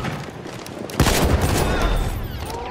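An explosion booms in a stone tunnel.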